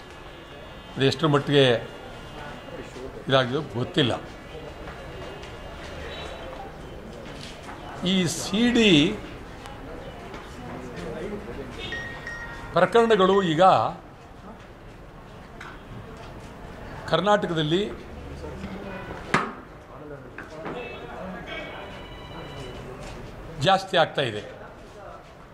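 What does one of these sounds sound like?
A middle-aged man speaks outdoors in short bursts with pauses.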